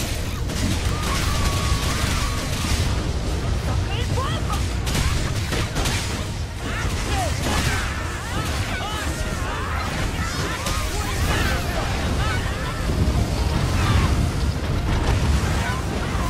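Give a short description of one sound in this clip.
Spell blasts and hits crash and whoosh in a video game.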